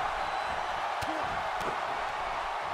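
Heavy bodies thud onto a wrestling ring mat.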